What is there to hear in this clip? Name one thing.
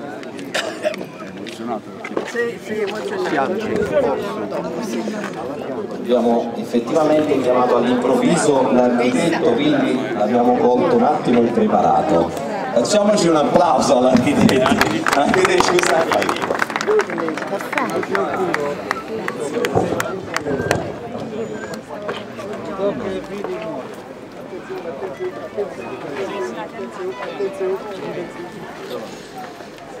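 A crowd of adults talks and murmurs outdoors.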